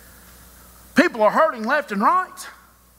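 A man speaks loudly and with animation through a microphone in a large hall.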